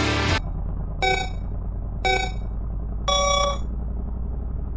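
Countdown beeps sound at an even pace.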